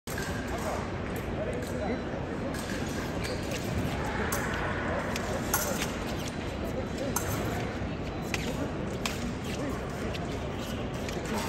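Footsteps tap and squeak as two fencers move back and forth.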